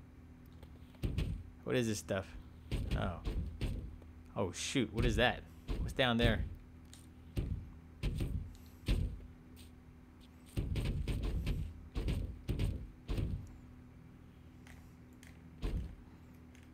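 A body thuds and tumbles against hard ledges.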